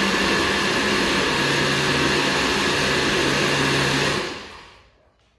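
A blender whirs loudly, blending.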